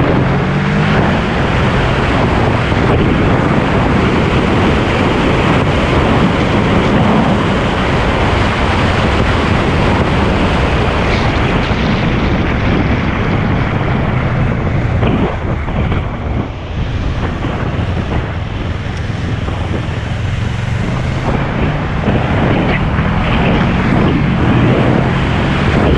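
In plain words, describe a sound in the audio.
A motorcycle engine hums and revs steadily close by.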